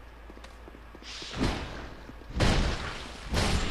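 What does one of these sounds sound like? A blade whooshes through the air and strikes.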